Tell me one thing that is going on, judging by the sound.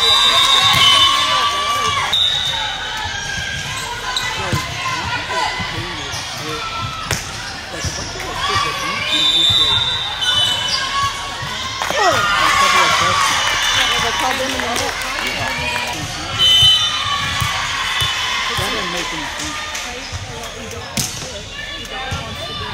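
A crowd of players and spectators chatters and calls out in a large echoing hall.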